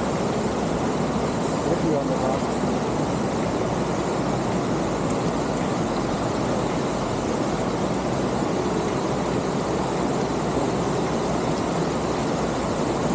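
A river rushes loudly over rocks nearby.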